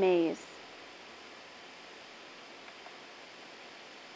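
A finger presses a key on a device's keypad with a soft click.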